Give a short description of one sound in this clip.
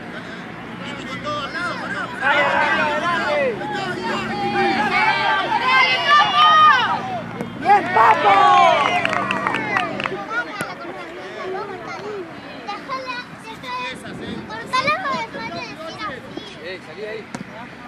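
Children shout excitedly outdoors across an open field.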